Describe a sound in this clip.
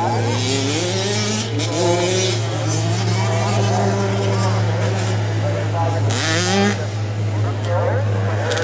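Small dirt bike engines whine and rev up and down nearby, outdoors.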